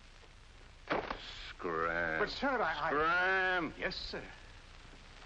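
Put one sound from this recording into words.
A young man speaks loudly.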